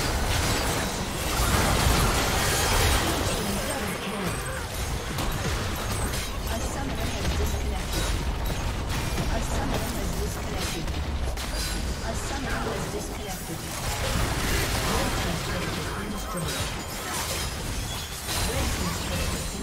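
Game spells crackle and blast in a busy fight.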